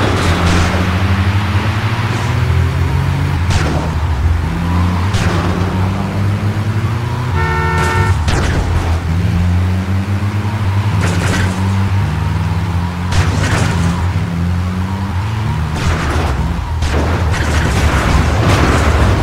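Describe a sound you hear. An engine drones steadily, rising in pitch and dropping back as gears shift.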